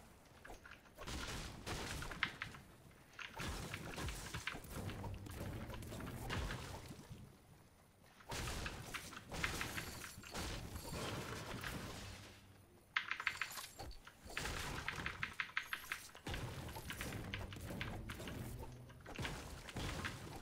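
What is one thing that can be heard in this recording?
A pickaxe strikes wood and stone with repeated sharp knocks.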